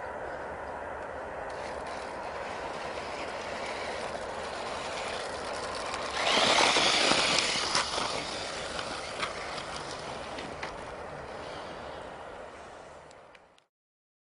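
Tyres crunch and scatter over a dirt track.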